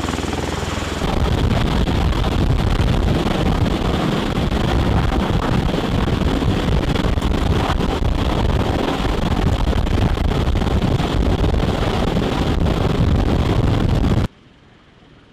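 Strong rotor downwash buffets loudly close overhead.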